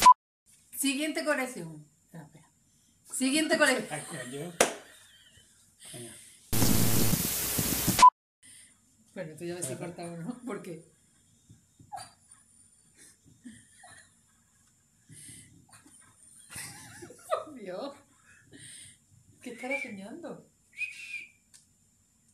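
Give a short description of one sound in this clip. A woman talks and laughs close to a microphone.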